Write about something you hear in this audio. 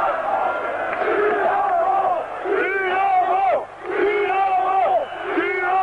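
Men nearby shout and chant in unison.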